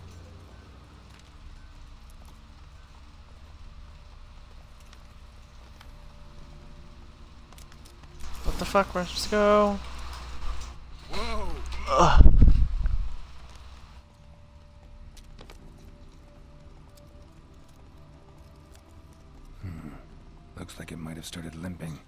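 A horse gallops along a dirt track.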